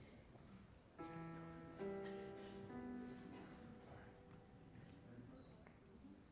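A group of young singers sing a held chord together without instruments.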